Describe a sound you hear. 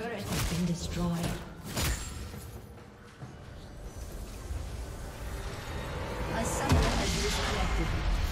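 Game spells and hits crackle and thud in a busy fight.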